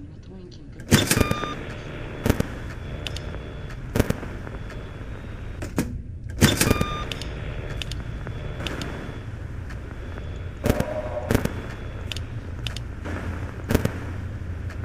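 Sharp electronic clicks and bursts of static sound now and then.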